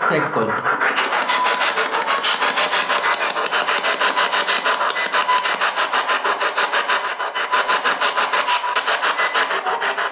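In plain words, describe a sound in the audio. A handheld radio rapidly chops through bursts of static and broken sound.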